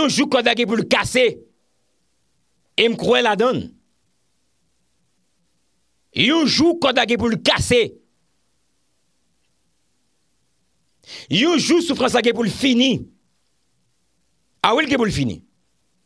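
A young man speaks into a close microphone with emphasis, in short bursts with pauses.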